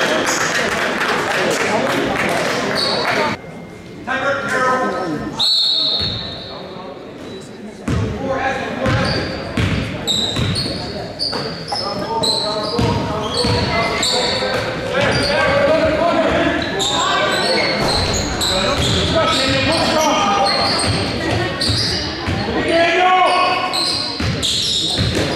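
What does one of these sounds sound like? Teenage boys talk and call out nearby in an echoing hall.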